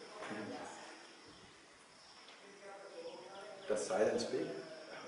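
A middle-aged man speaks calmly and thoughtfully, close by.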